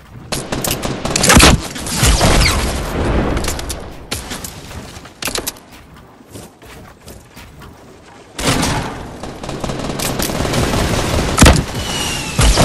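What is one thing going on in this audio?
Wooden walls clatter and thud as they are quickly built.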